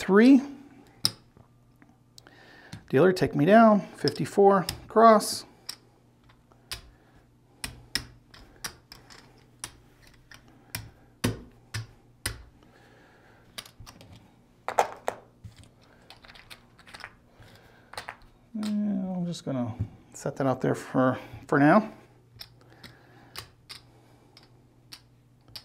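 Gaming chips click and clack together on a felt table.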